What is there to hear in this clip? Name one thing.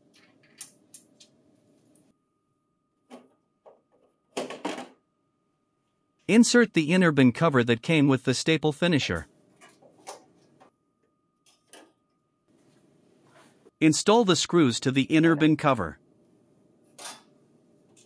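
A screwdriver clicks against metal screws.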